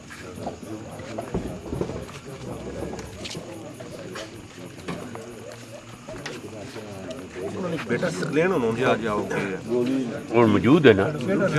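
Several men talk together close by.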